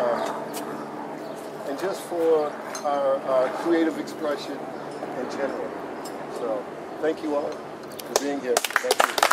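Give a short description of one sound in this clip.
A man speaks casually close by.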